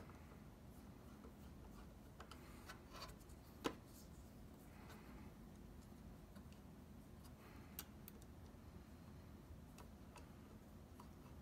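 A screwdriver clicks and scrapes against metal parts.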